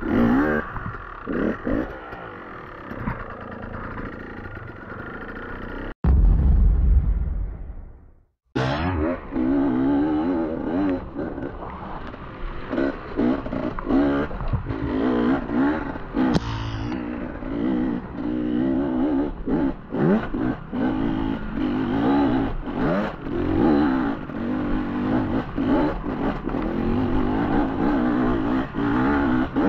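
A dirt bike engine revs and roars up close, rising and falling.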